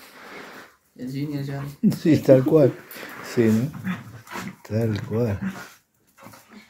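Dogs growl playfully while wrestling.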